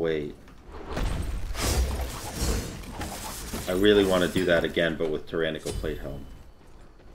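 Game sound effects whoosh and burst.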